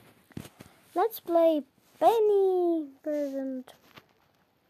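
A young boy speaks loudly and with animation, close to a microphone.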